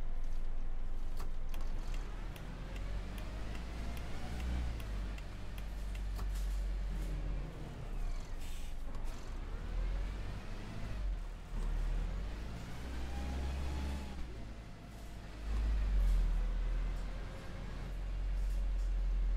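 A bus engine rumbles low and rises and falls in pitch as the bus drives along.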